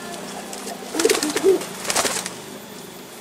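Pigeon wings flap briefly.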